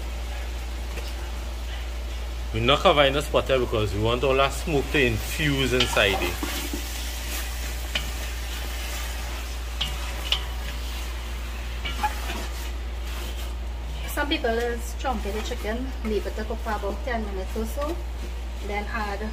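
A wooden spoon scrapes and stirs food in a metal pot.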